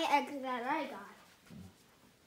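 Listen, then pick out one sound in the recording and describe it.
A small child babbles in a high voice close by.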